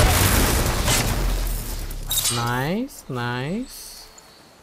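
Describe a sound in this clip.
Heavy metal blows and crashes ring out in a fight.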